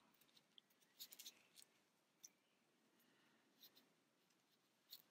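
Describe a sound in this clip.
Fingers rub and rustle against a soft knitted toy close by.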